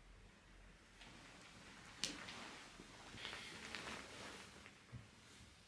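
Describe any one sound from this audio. Bedsheets rustle softly as a person shifts and gets out of bed.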